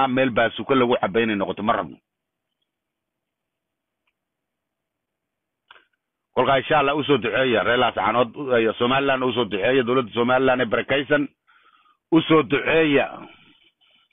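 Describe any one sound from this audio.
An older man speaks with animation close to a phone microphone.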